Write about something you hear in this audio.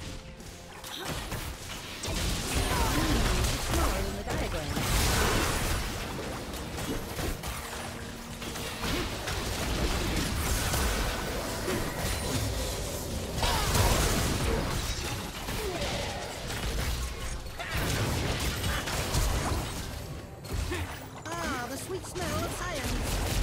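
Spell blasts, whooshes and impacts crackle and boom in a fierce game battle.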